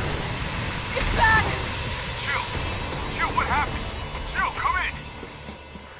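A monster shrieks and growls loudly.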